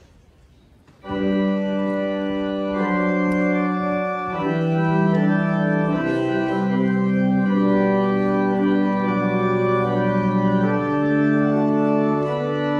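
A pipe organ plays loud sustained chords.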